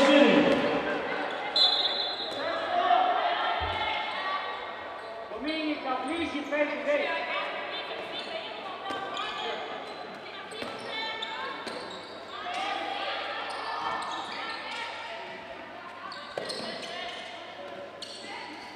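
Sneakers squeak on a hard indoor court.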